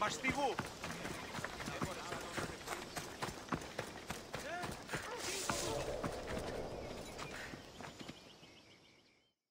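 Footsteps run quickly over dirt and dry leaves.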